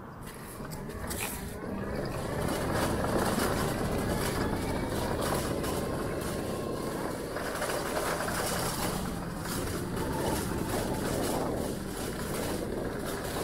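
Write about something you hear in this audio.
Scooter tyres rumble over cobblestones.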